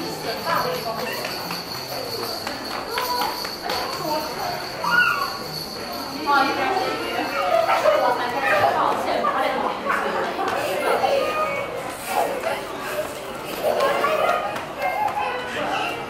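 Young children shout and squeal playfully nearby.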